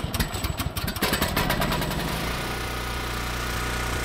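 A small generator engine catches and runs with a steady, low rumble.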